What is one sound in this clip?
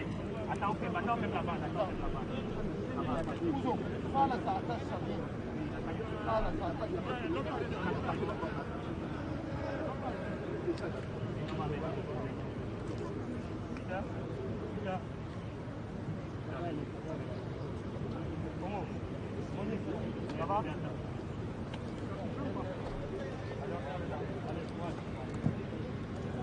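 Several men and women talk and call out at once outdoors, a little way off.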